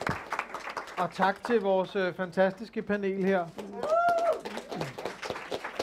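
A crowd cheers and whoops over the applause.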